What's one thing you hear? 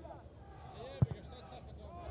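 A football is kicked with a thump.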